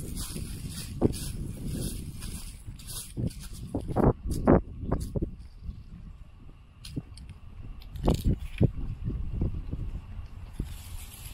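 Footsteps scuff along a paved path.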